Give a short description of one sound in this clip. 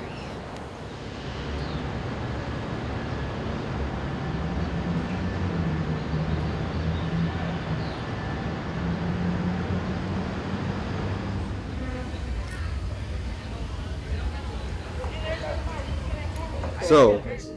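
Low rumbling noise of a city fills the air.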